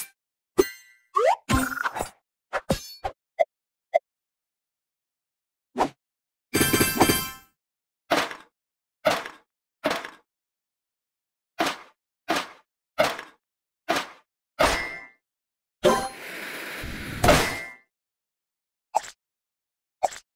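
Cheerful game chimes and pops sound as blocks are matched.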